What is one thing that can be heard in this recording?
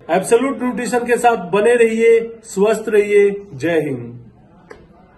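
A young man speaks calmly and clearly into a nearby microphone.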